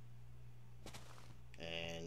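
A stone block cracks and crumbles as it breaks.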